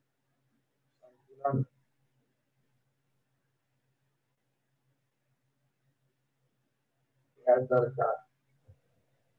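An older man speaks briefly and calmly through a microphone, in short bursts between long silences.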